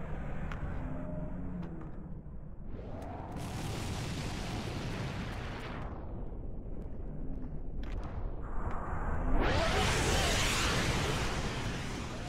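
A large explosion booms and rumbles deeply.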